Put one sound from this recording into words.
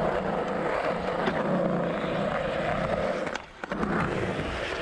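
A skateboard clacks against concrete.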